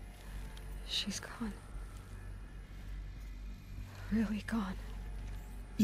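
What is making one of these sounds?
A young woman speaks quietly and sadly.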